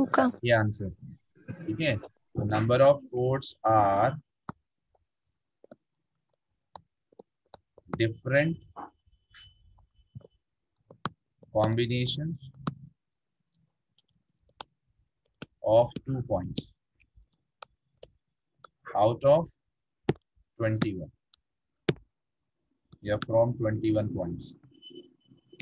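A man speaks calmly into a close microphone, explaining in short phrases with pauses.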